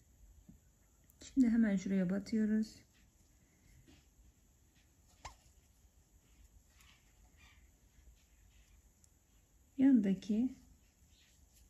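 Thread rustles softly as it is pulled through fabric.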